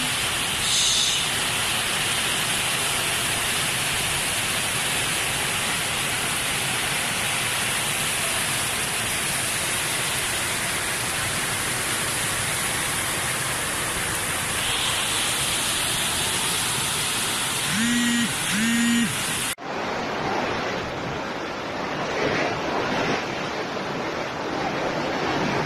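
Strong wind roars and gusts.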